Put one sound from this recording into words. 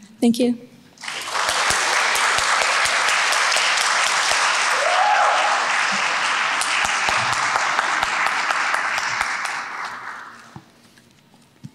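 An audience applauds.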